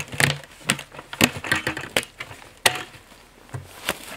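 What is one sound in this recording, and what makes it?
A plastic lid snaps onto a bucket with sharp clicks.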